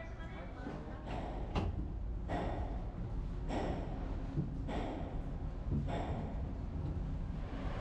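Suitcase wheels rumble and clack over a ramp at a steady pace.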